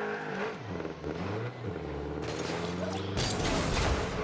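A game car's engine hums and revs.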